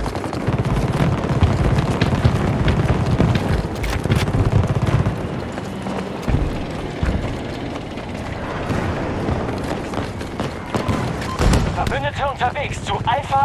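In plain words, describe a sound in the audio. Heavy footsteps thud on hard ground.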